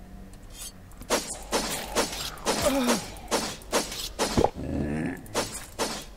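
A machete slashes into flesh.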